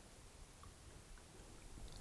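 A man drinks water from a bottle.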